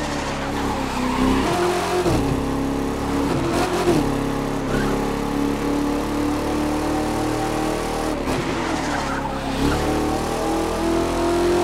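A car engine revs steadily, rising and dropping in pitch as it shifts gears.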